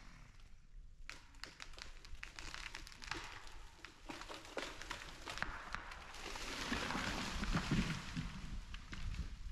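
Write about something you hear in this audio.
A tree creaks, cracks and crashes to the ground.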